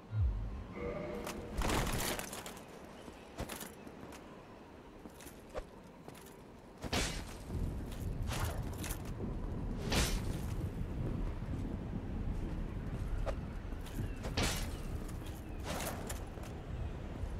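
Armoured footsteps thud on stone.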